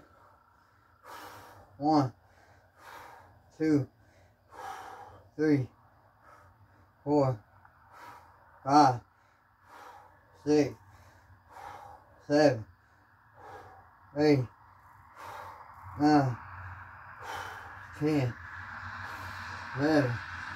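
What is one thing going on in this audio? A man breathes heavily between repetitions.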